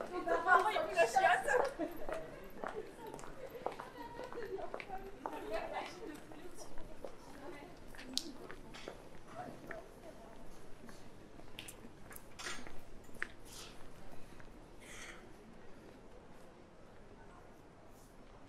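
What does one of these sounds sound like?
Footsteps tap on cobblestones.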